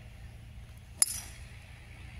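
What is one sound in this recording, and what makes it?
A golf driver strikes a ball off a tee with a sharp crack.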